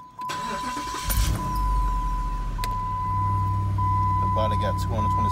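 A car engine cranks, starts and idles with a low rumble.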